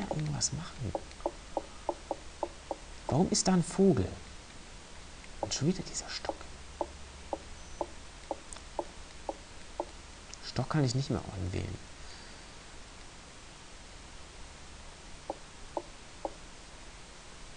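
Footsteps tap along at a steady walking pace.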